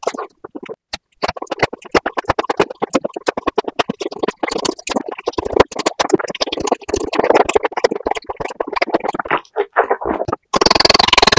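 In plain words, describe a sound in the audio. A man chews and crunches food close to a microphone.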